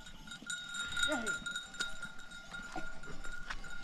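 Goats bleat nearby.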